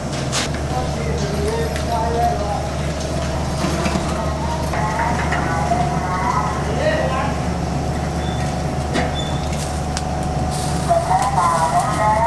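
A fire roars steadily inside a metal oven.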